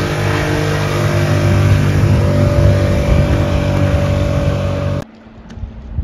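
A boat engine roars loudly close by.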